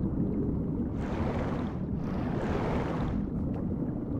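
Water swishes with slow swimming strokes.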